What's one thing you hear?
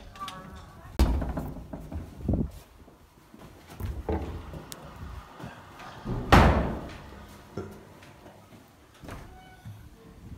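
A door handle clicks as a door is pulled open.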